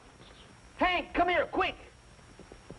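A man calls out loudly.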